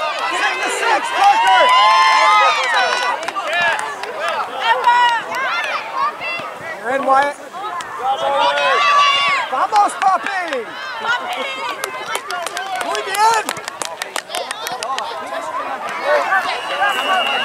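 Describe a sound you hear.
A crowd of adults and children shouts and cheers outdoors.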